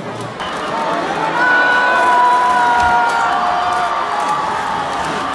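Men in the crowd let out long, drawn-out cries.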